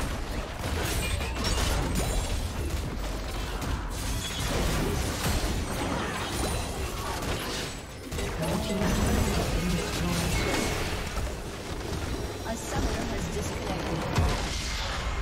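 Game battle effects clash and blast in quick bursts.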